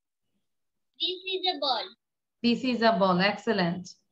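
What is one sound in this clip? A woman speaks clearly through an online call, as if teaching.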